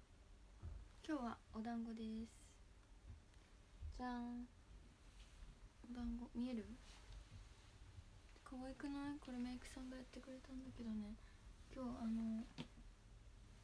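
A young woman speaks softly and casually, close to a microphone.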